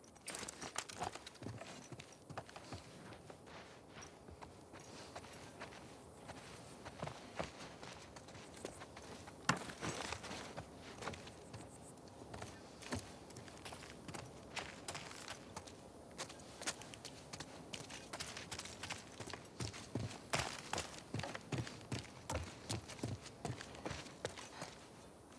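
Footsteps thud and creak on a wooden floor.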